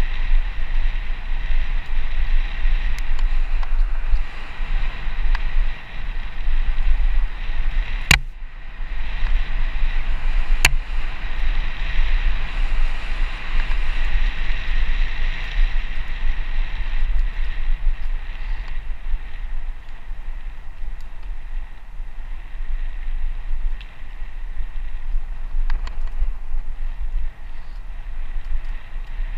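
Tyres roll and crunch over a bumpy dirt track.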